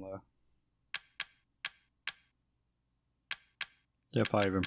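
Short menu clicks tick as a selection moves.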